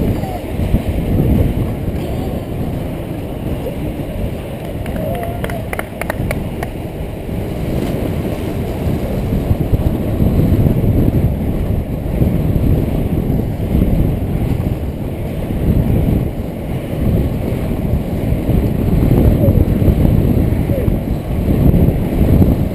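Wind rumbles and buffets against a helmet-mounted microphone.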